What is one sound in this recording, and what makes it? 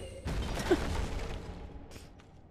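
A sword swings with a heavy whoosh.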